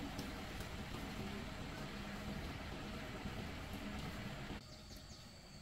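Dry leaves crunch and rustle underfoot.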